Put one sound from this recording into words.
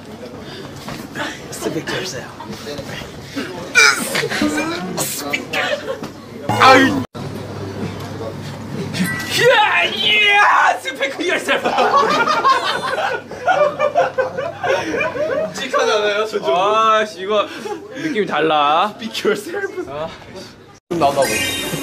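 Young men laugh and shout playfully close by.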